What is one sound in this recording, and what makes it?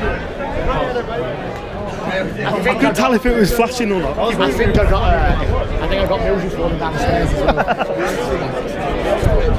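Men shout and sing loudly up close.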